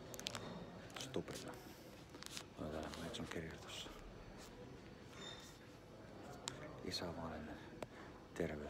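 A middle-aged man talks calmly close to a phone microphone.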